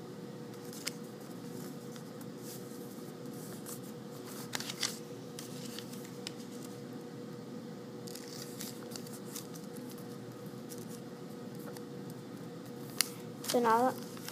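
Paper rustles and crinkles as it is folded.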